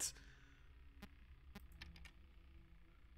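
Electronic beeps sound as a menu option is selected.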